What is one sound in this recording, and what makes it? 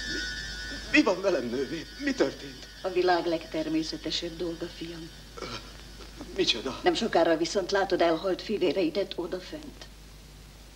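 An elderly woman speaks calmly and kindly, close by.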